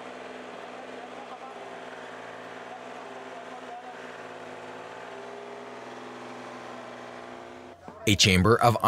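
An excavator engine hums steadily.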